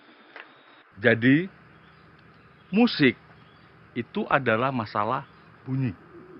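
A man speaks with animation, explaining.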